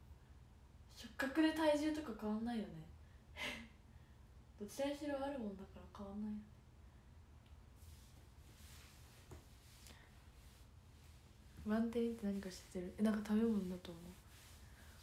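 A young girl speaks close by, in short bursts.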